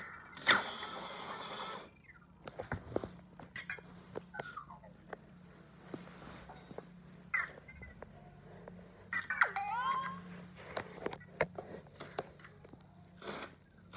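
A small toy robot's motor whirs as its treads roll.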